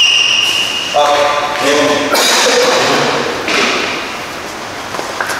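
Men call out and talk to each other.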